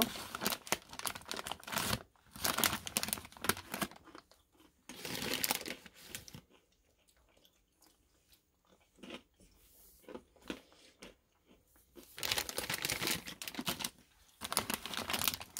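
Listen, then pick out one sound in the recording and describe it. Hard snacks rattle as a hand reaches into a bag.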